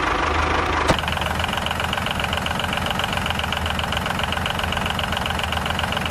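A small electric toy motor whirs steadily.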